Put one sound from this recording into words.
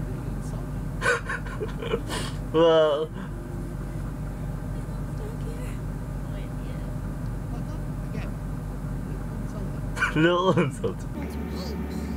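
A young man laughs loudly, close to a microphone.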